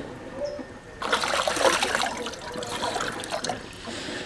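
Water pours from a jug into a glass.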